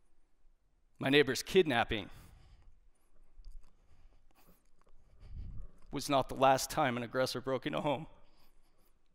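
A man speaks calmly through a headset microphone, pausing between phrases.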